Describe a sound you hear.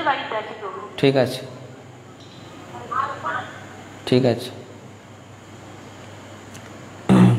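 A man speaks calmly and close into a microphone, in short phrases.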